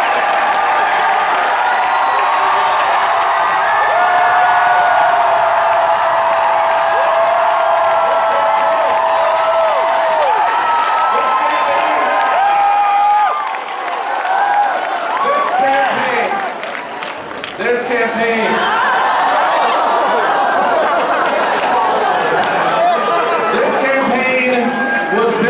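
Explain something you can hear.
A large crowd cheers and screams loudly in a big echoing hall.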